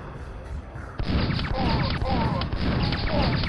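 A nail gun fires in rapid bursts.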